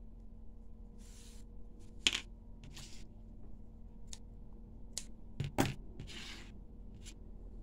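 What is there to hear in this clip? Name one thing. Yarn rustles softly as it is pulled through knitted fabric.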